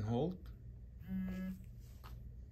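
A remote controller gives a short startup beep.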